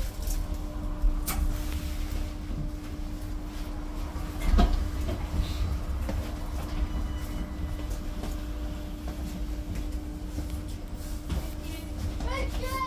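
A bus engine hums steadily with a low rumble.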